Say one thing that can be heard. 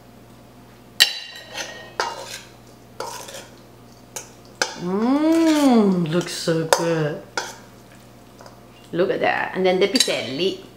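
A spoon clinks and scrapes against a stainless steel bowl.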